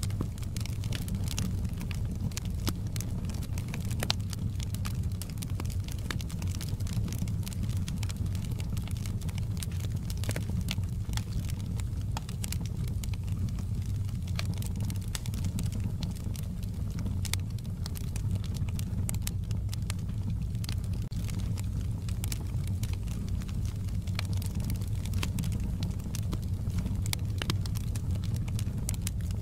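A wood fire crackles and pops steadily.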